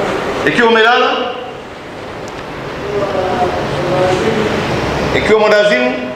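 A man chants in a drawn-out, melodic voice through a microphone and loudspeakers, echoing in a large hall.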